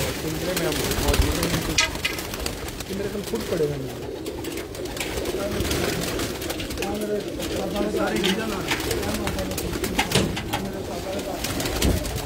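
Many pigeons coo steadily close by.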